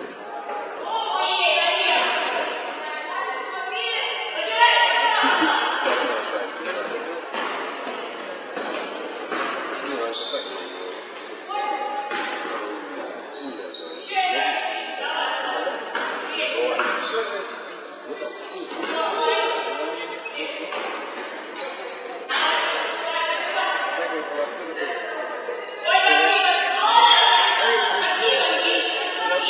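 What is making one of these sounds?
Young women shout and call out across a large echoing hall.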